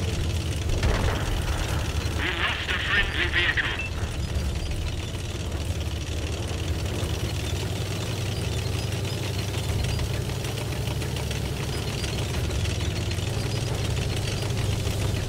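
A tank engine rumbles steadily as the tank drives along.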